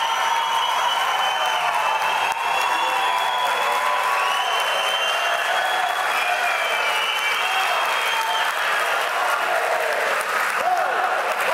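A large crowd applauds loudly in a big echoing hall.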